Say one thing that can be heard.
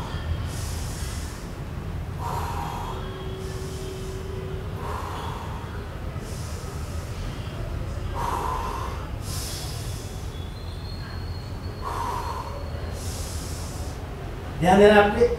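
A man breathes out hard with each lift.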